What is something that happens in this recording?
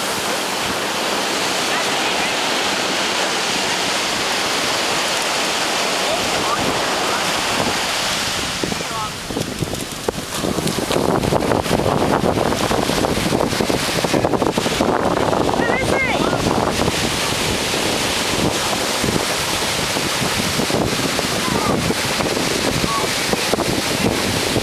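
Waves wash onto the shore with a steady rushing roar.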